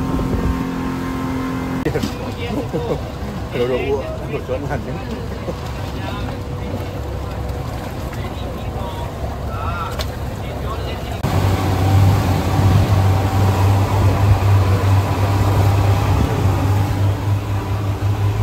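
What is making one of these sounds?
Water rushes and splashes against a speeding boat.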